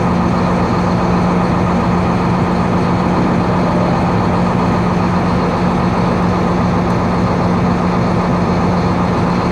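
A truck engine hums steadily close by.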